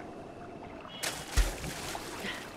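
A body splashes heavily into water.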